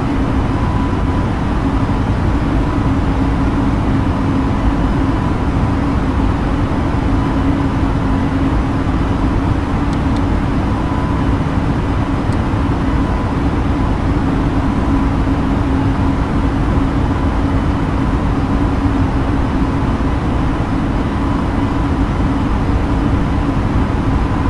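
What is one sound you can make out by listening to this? Jet engines drone with a steady, low roar.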